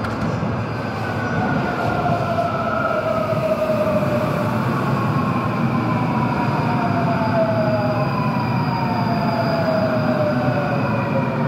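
Train wheels squeal on the rails as a train passes.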